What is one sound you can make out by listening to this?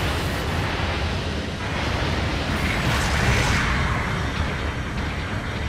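Heavy mechanical footsteps thud and rumble.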